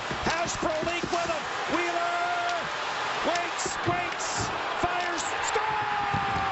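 Skates scrape and sticks clack on ice.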